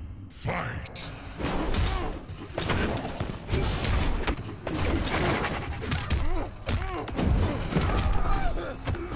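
Heavy punches and blows land with thudding impacts in a fighting game.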